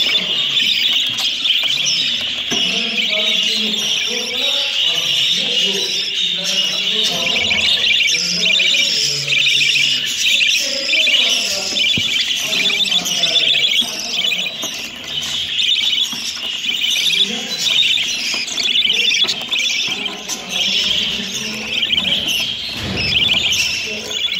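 A flock of small parakeets chirps and chatters constantly, close by.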